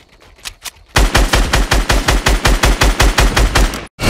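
A rifle fires in a rapid, loud burst of shots.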